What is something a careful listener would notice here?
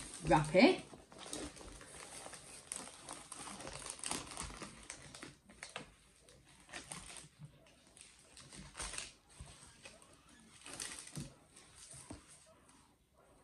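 A stiff plastic-covered sheet rustles and crinkles as it is unrolled.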